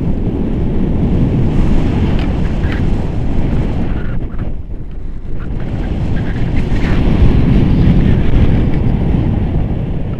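Strong wind buffets and roars against the microphone, outdoors high in the air.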